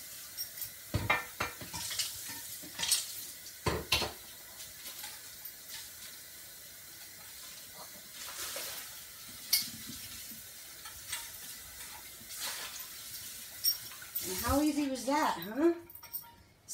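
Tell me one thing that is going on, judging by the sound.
Dishes clatter and knock in a sink.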